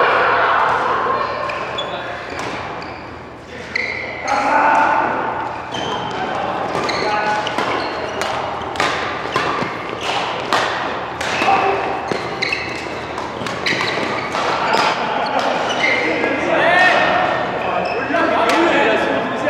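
Sports shoes squeak on the court floor.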